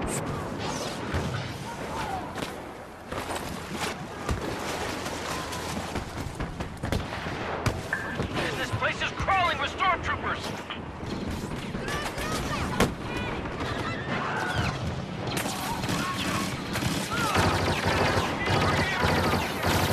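Blaster guns fire in rapid bursts nearby.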